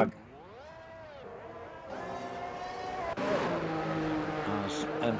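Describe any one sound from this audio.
A racing car engine whines, its pitch rising and falling as it shifts gears.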